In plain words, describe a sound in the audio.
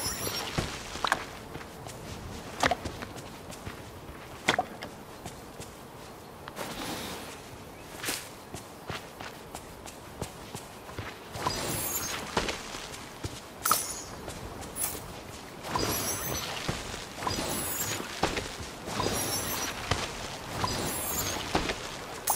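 Magical sparkles chime and shimmer in bursts.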